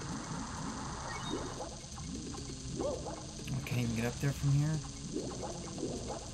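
Water splashes as a cartoon character swims.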